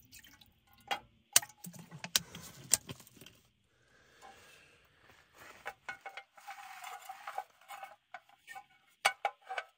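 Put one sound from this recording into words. A metal pan knocks and clatters as it is handled.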